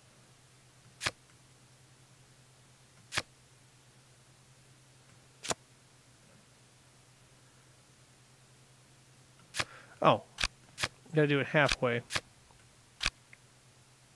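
Playing cards click sharply as they are moved and dealt.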